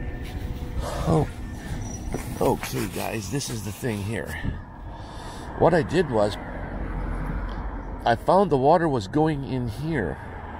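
An older man talks close by.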